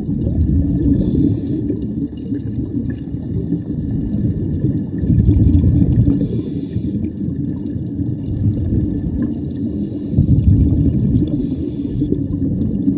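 Scuba breathing bubbles rush and gurgle in bursts underwater.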